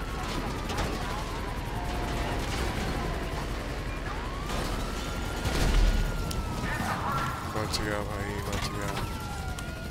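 Police sirens wail and rise and fall in pitch.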